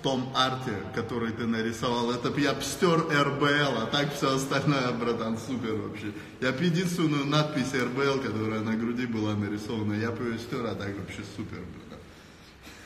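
A young man raps rhythmically close to a phone microphone.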